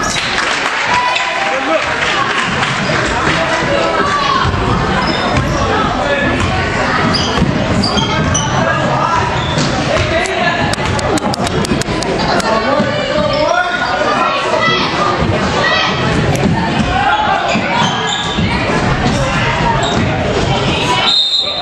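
Young spectators shout and cheer in an echoing gym.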